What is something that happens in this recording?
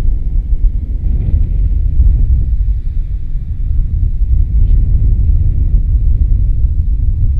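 Strong wind buffets and rumbles outdoors.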